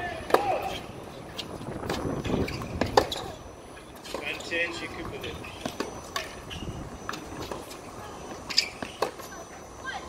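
Tennis balls are struck with rackets.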